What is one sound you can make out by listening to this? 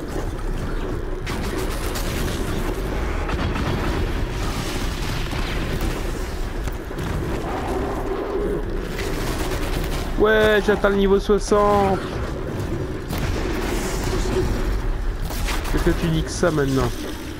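Blasts and bursts of fire crackle and boom during a fight.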